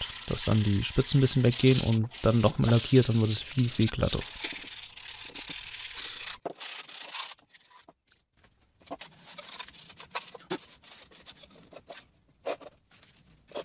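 A hard plastic box knocks and scrapes against a wooden tabletop.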